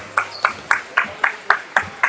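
Basketballs bounce steadily on a hard floor in an echoing hall.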